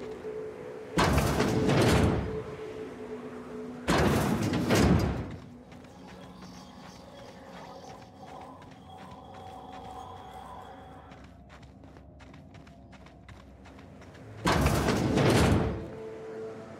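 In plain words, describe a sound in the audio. A heavy metal door slides open with a loud whoosh.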